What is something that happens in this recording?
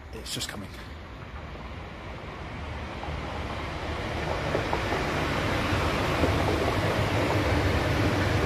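A train rushes past with a growing roar.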